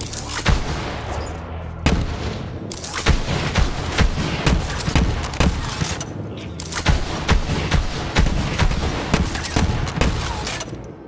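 Energy blasts explode with loud booming crackles.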